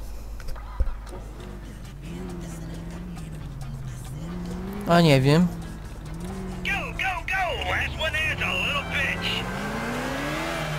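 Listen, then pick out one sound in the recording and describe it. A car engine hums and revs as the car drives off.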